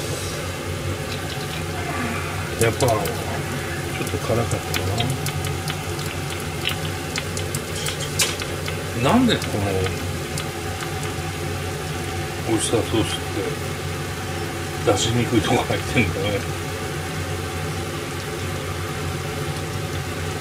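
Food simmers and bubbles softly in a pan.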